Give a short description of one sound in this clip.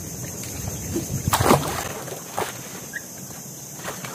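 Water splashes as a man swims away.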